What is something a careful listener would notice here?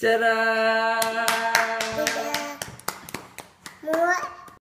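An adult claps hands quickly close by.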